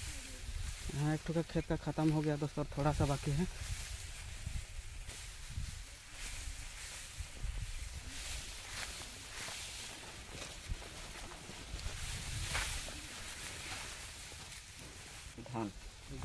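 A young man speaks close to the microphone.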